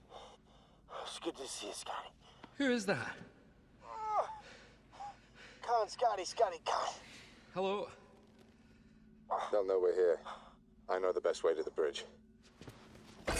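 A man speaks in a strained, breathless voice close by.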